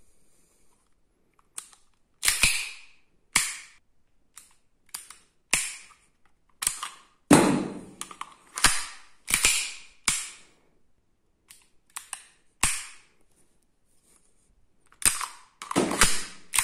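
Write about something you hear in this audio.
A pistol's metal parts click and clack as it is handled.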